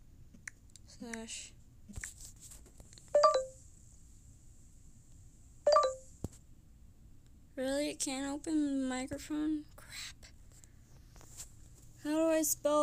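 A young girl talks in short bursts close to a microphone.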